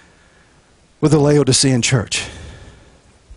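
A middle-aged man speaks briefly and calmly into a microphone.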